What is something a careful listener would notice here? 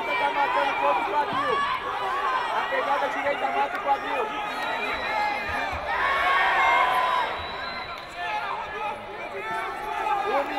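A crowd of men and women shouts and cheers in a large echoing hall.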